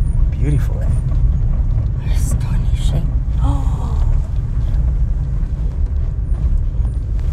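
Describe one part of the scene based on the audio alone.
A vehicle engine rumbles steadily while driving.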